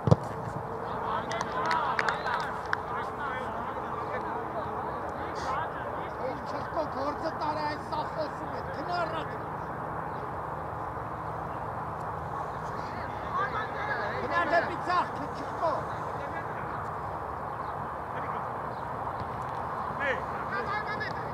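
Young men shout to each other from a distance across an open field.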